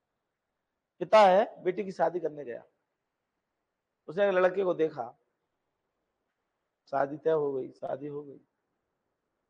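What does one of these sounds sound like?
A middle-aged man speaks calmly into a close microphone in short phrases.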